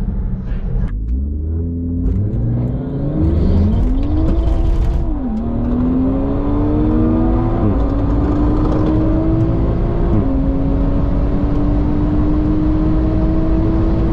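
A car engine revs up hard, climbing in pitch and dropping with each gear change.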